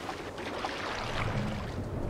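Oars splash in water as a boat is rowed.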